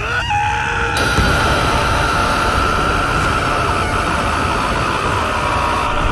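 A swirling burst of magic energy roars and hums steadily.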